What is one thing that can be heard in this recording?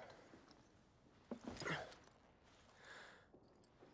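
Boots thud onto a hard floor.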